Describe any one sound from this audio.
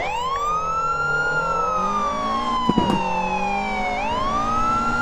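A car engine hums and revs, rising and falling in pitch.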